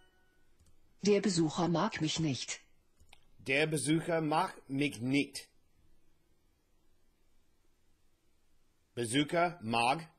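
A young man speaks calmly and clearly into a nearby microphone, in short phrases with pauses.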